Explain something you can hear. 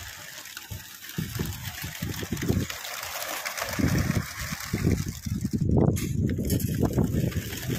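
A flock of pigeons flaps their wings as they take off.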